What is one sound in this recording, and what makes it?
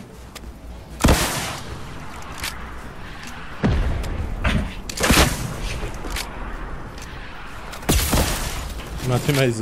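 Heavy blasts boom, each followed by a rumbling explosion.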